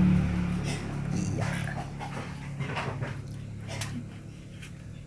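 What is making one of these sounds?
A knife scrapes and tears through soft fibrous fruit flesh.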